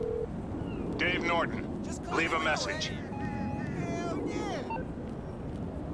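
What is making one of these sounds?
A man speaks on a phone with animation.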